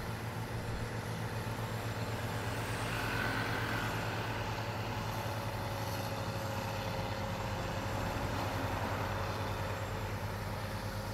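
A heavy diesel engine rumbles steadily at a distance.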